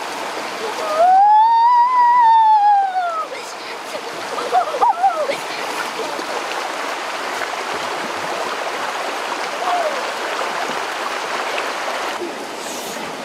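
A stream of water rushes steadily over rocks.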